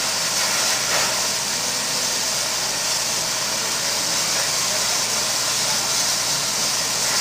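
A steam locomotive rolls slowly along the rails.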